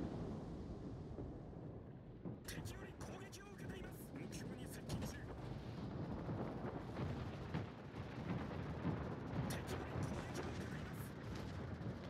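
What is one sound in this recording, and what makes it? Naval guns fire in booming blasts.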